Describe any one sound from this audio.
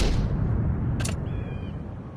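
A short click sounds as a game menu opens.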